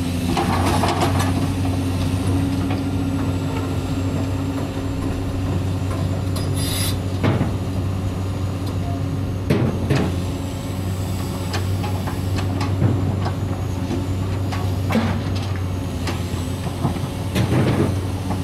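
An excavator's steel bucket clanks and scrapes against sand and stones.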